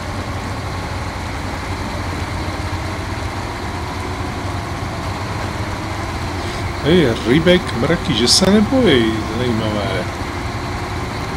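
Water splashes under a truck's wheels.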